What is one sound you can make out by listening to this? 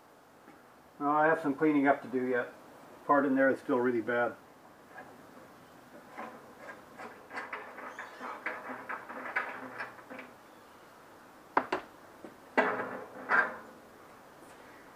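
An older man talks calmly close by.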